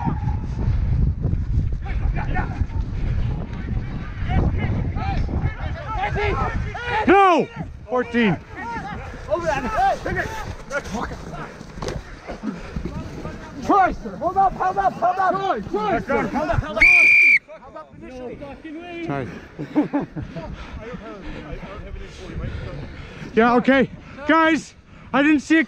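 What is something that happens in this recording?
Young men shout and call out to each other close by, outdoors.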